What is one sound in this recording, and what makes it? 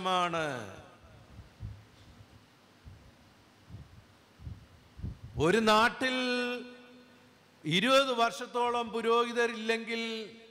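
A middle-aged man preaches forcefully through a microphone, drawing out his words between pauses.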